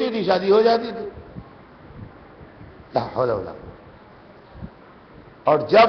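An elderly man speaks slowly and solemnly into a microphone, with long pauses.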